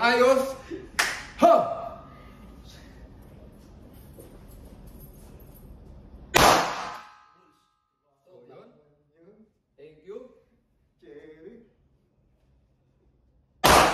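Pistol shots ring out loudly in an echoing indoor range.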